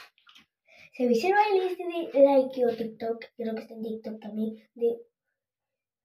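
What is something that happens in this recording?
A young girl sings close by.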